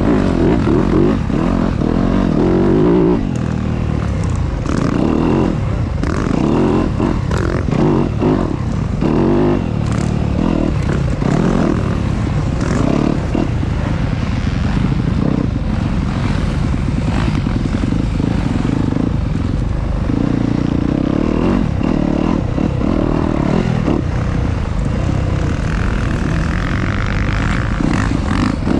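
A dirt bike engine roars and revs up and down close by.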